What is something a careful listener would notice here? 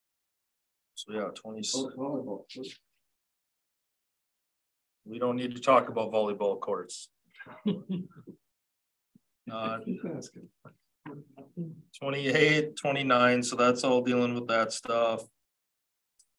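A man speaks calmly through a microphone, with short pauses.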